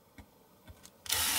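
An electric drill whirs briefly.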